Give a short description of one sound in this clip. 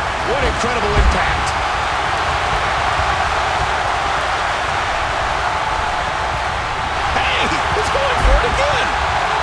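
Heavy thuds sound as bodies slam onto a wrestling mat.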